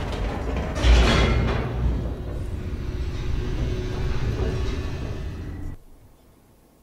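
A metal shutter gate rattles and clanks as it rises.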